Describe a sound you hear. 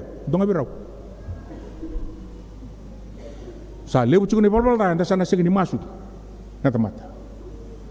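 A middle-aged man preaches with animation into a microphone, in short emphatic bursts with pauses.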